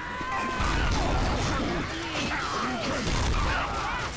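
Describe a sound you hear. A crowd of zombies snarls and groans.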